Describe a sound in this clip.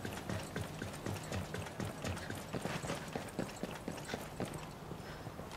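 Heavy boots run quickly across a hard surface.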